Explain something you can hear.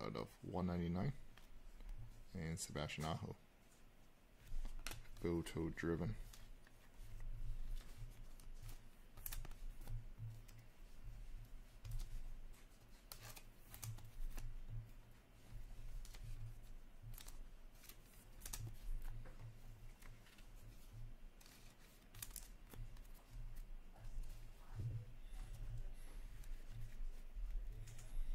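Trading cards rustle and click as they are shuffled by hand.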